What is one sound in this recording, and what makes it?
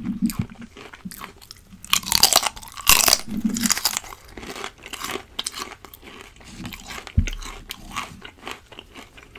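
A man chews crunchy food close to a microphone.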